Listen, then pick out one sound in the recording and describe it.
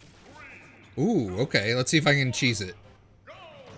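A game announcer's voice calls out loudly.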